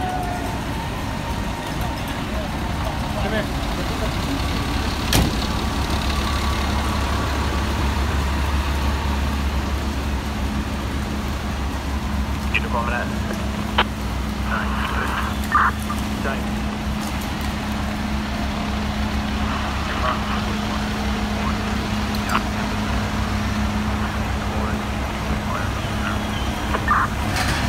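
A fire engine's diesel engine idles with a low, steady rumble.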